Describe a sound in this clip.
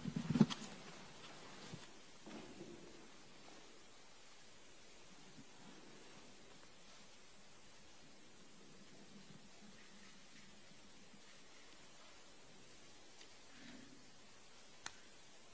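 A woman speaks quietly into a microphone.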